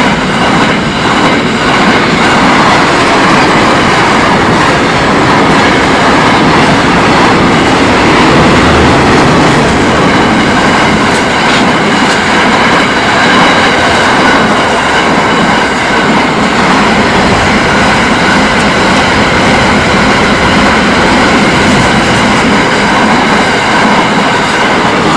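A freight train rumbles past loudly and steadily.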